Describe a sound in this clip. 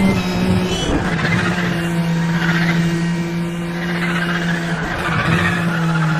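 Tyres screech on asphalt.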